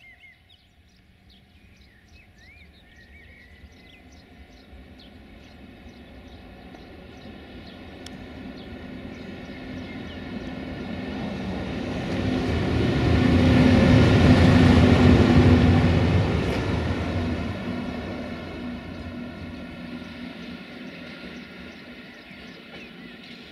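An electric locomotive approaches, roars past close by and fades away.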